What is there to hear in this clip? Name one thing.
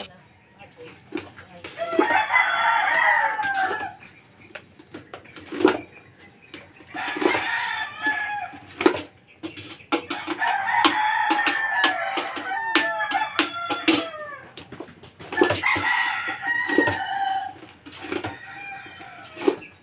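A wooden pestle thumps into a metal pot, pounding again and again.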